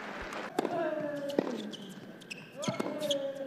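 A racket strikes a tennis ball.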